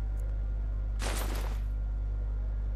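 Cloth rustles as a robe is put on.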